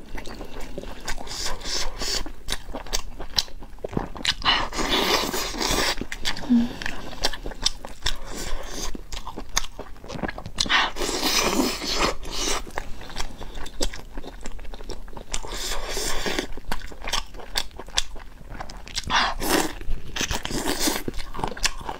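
A young woman chews food noisily and wetly, close to a microphone.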